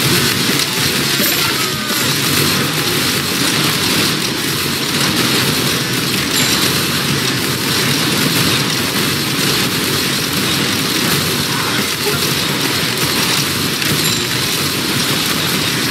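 Guns fire rapidly in a battle.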